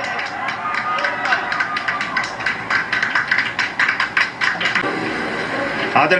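A crowd cheers and claps, heard through a television loudspeaker.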